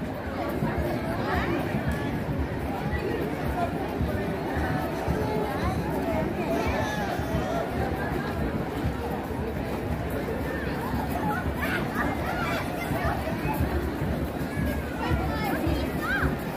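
Children's voices call out high and excited among the crowd.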